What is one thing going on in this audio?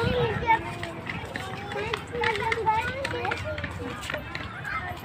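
Young girls chatter nearby outdoors.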